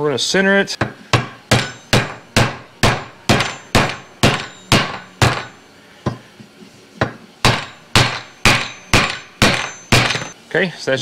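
A hammer strikes a wooden block steadily, over and over.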